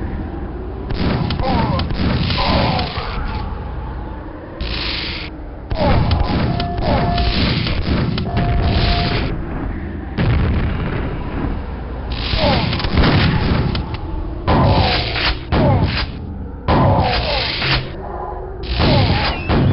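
A lightning gun crackles and buzzes in short bursts.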